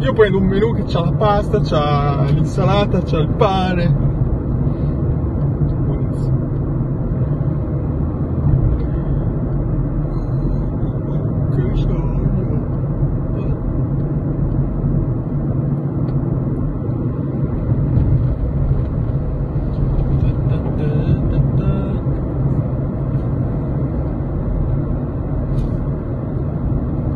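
A car engine hums steadily with road noise inside the cabin.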